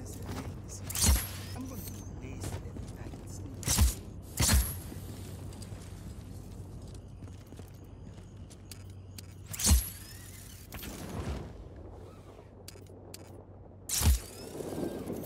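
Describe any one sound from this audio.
A grappling hook fires with sharp, loud snaps.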